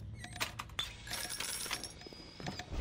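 A bright chime rings as coins are picked up.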